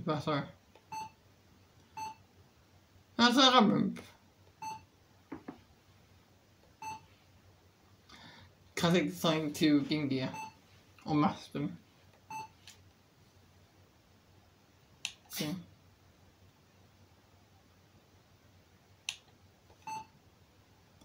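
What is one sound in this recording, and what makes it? Short electronic menu chimes blip as pages change.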